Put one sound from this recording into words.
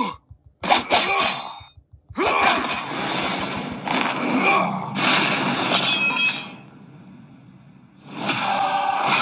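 Weapon clashes and hits sound from a fighting game.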